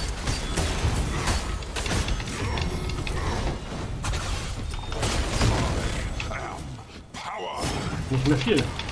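Swords clash and strike in a video game fight.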